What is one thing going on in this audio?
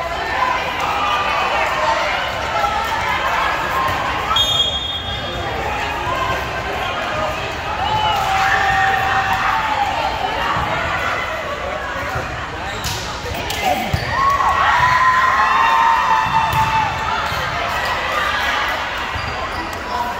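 Young women call out to one another in a large echoing gym.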